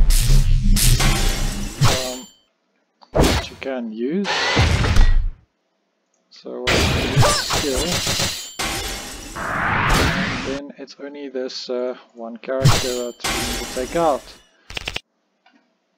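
Energy blasts and weapon clashes ring out in a fight.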